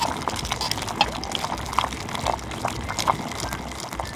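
A small spoon clinks and scrapes against a metal pan.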